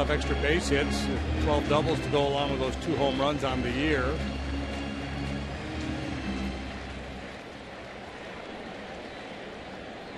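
A large crowd murmurs in an open stadium.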